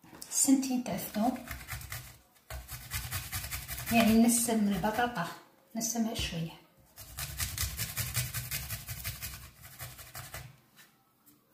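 Garlic rasps rapidly against a metal grater.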